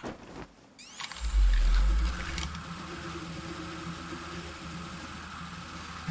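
A zipline whirs steadily.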